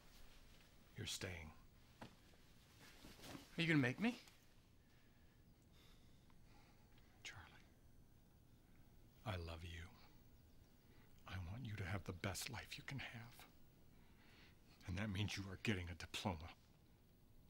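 An elderly man speaks firmly and close by.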